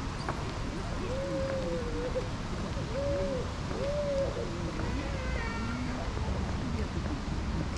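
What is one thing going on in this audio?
Young people talk faintly in the distance outdoors.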